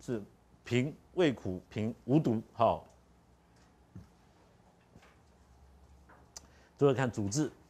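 A middle-aged man speaks calmly through a clip-on microphone, with pauses.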